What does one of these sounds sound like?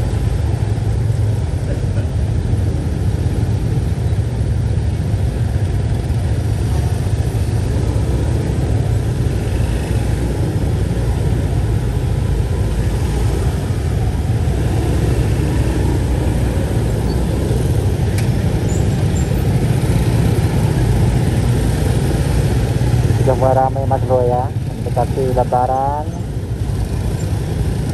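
Many motorcycle engines idle and rumble steadily in slow, crowded traffic.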